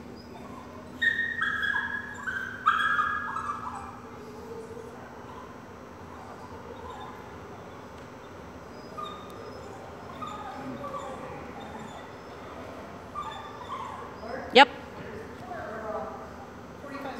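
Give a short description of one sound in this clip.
A woman talks to a dog in a high, cheerful voice in an echoing hall.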